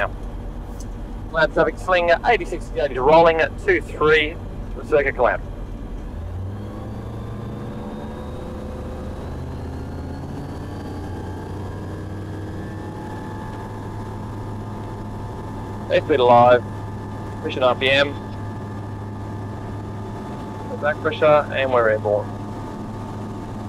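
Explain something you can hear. A small aircraft engine drones steadily and then revs up to full power.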